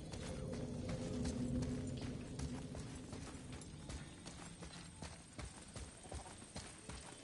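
Heavy footsteps thud on stone stairs.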